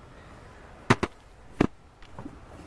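A hand taps on a wooden cart.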